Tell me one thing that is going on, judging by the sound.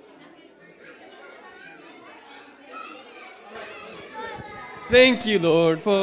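A crowd of adults and children chat quietly.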